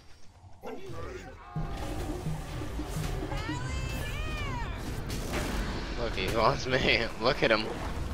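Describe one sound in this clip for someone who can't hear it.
Magical blasts whoosh and crackle in a fierce battle.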